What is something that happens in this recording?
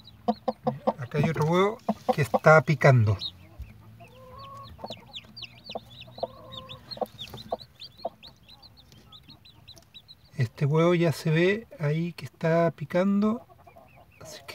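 A hen clucks and croons low.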